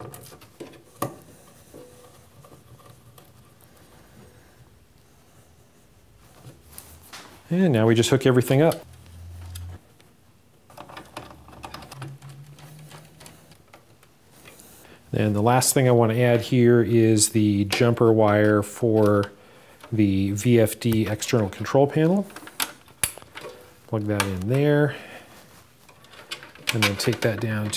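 Plastic parts click and rattle as hands fit them into a metal box.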